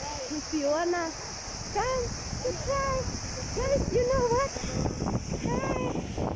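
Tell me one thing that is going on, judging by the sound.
Fountain jets spray and splash water steadily.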